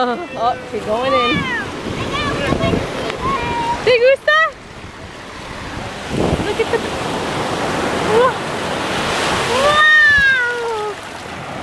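A young girl talks and squeals excitedly close by.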